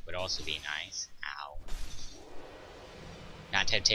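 A heavy weapon strikes armour with a crash.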